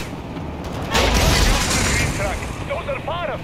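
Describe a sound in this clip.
A loud explosion booms nearby and rumbles away.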